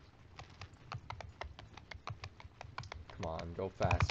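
A horse's hooves thud quickly in a gallop.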